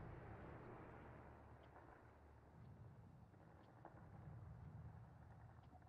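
Ship engines rumble low over the sea.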